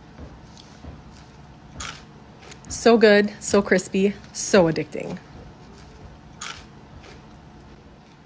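Crisp fries crunch as a young woman chews them.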